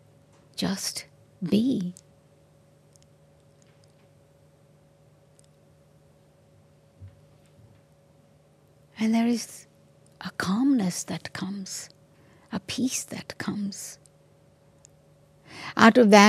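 An elderly woman speaks calmly and slowly into a microphone, with long pauses.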